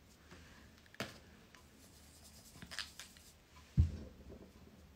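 A makeup brush taps and clicks against a case a few times.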